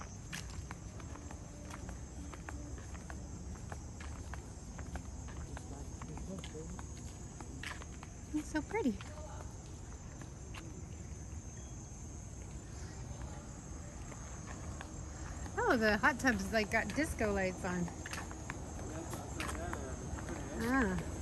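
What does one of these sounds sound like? Footsteps scuff slowly on a paved path outdoors.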